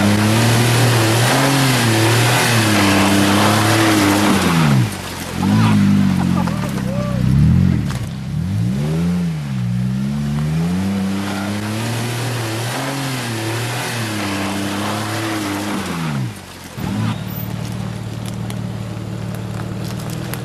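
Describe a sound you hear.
Tyres crunch and slip on loose dirt and rocks.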